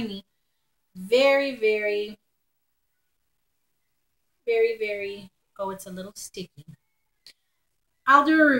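A woman talks calmly close to the microphone, in short bursts with pauses.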